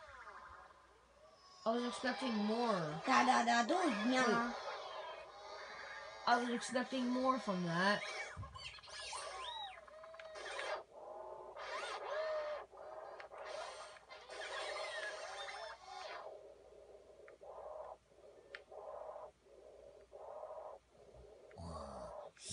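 Upbeat racing game music plays from a television speaker.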